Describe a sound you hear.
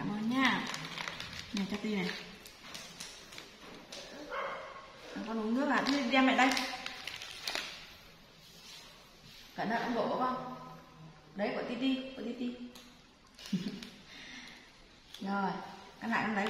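A young woman talks close by in a high, playful voice.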